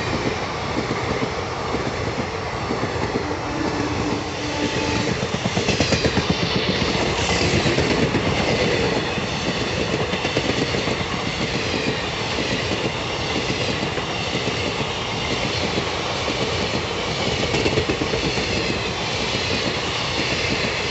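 A passenger train rushes past close by, its wheels clattering rhythmically over the rail joints.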